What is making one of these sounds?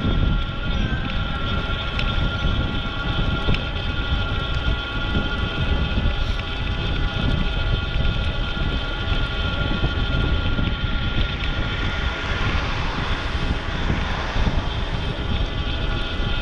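Wind rumbles loudly and steadily, as heard outdoors while moving.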